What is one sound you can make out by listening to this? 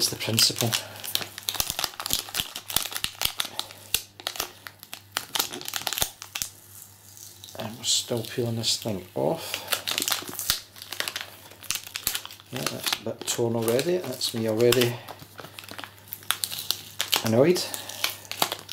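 Hands rustle and tap a cardboard box in plastic packaging, close by.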